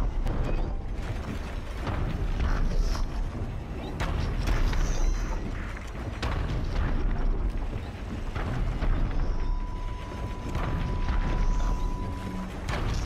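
Hands and feet clank on metal during a climb.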